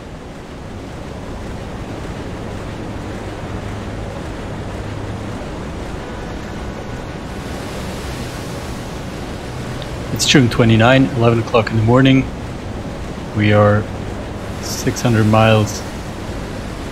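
Strong wind and rough sea waves roar steadily all around.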